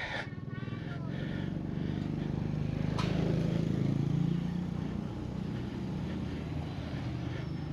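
A motorcycle engine hums as it approaches and passes close by.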